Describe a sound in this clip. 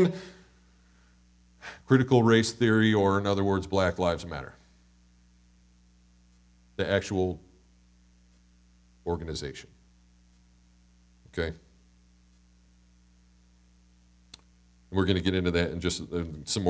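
A man speaks calmly through a microphone, with pauses, in a reverberant room.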